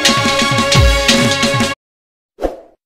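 A drum is beaten in a lively rhythm.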